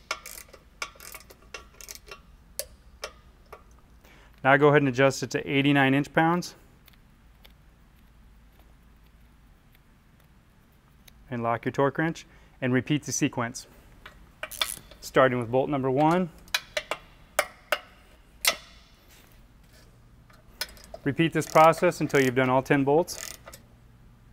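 A ratchet wrench clicks against metal in quick bursts.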